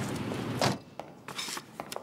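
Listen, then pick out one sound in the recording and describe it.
Glasses clink lightly on a table.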